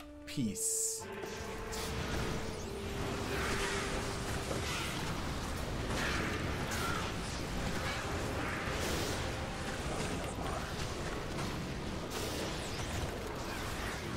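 Game spells crackle and burst during a fight.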